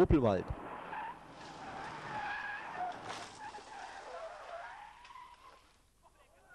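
Tyres spray loose gravel on a dirt road.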